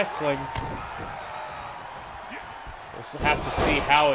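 A body slams onto a wrestling mat with a thud.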